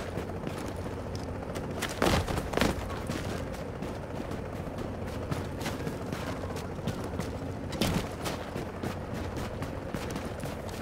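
Footsteps clatter quickly on metal stairs and walkways.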